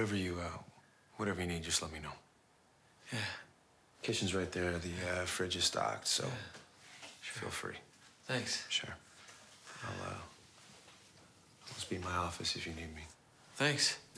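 A man speaks tensely and close by.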